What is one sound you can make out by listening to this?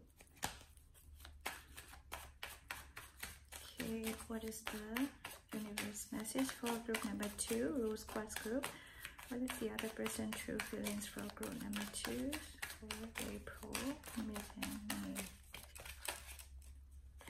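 Playing cards riffle and flutter as they are shuffled.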